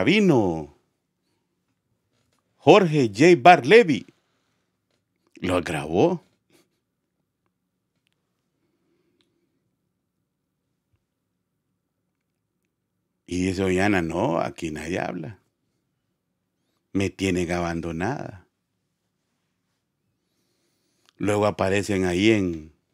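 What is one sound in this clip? A man speaks with animation into a close microphone, in bursts with pauses.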